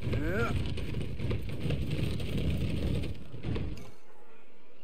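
Wooden crates creak and rattle.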